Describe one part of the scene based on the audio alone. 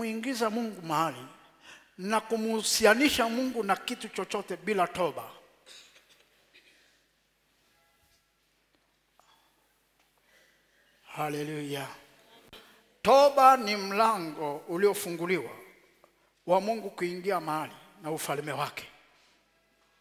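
A man preaches loudly through a microphone in an echoing hall, speaking in forceful bursts with pauses.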